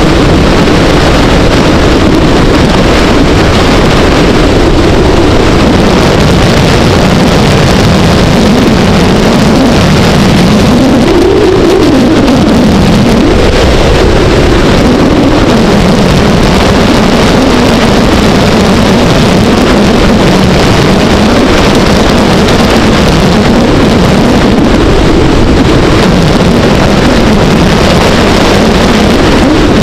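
A motorcycle engine hums steadily, its pitch rising and falling as it speeds up and slows.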